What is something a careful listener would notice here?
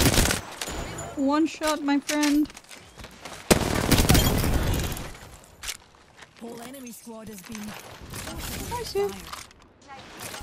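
A young woman talks into a microphone close by.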